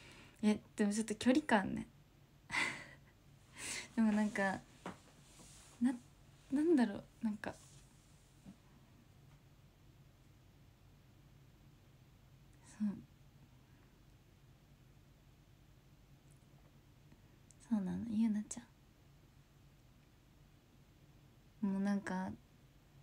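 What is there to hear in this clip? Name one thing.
A young woman talks softly and cheerfully close to the microphone, with long pauses.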